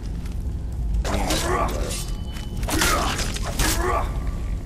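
A sword slashes and strikes flesh.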